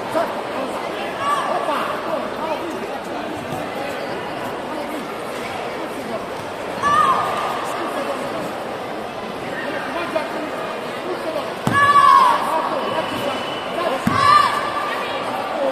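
Young fighters shout sharply as they strike.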